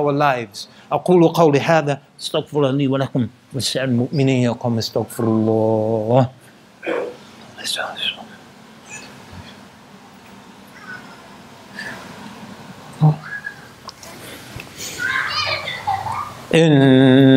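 A man speaks calmly and at length, close by.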